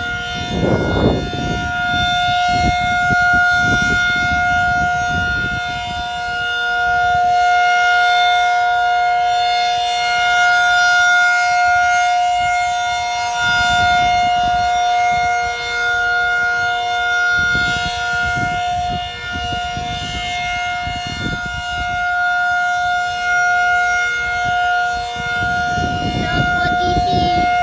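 A siren blares a long, steady tone.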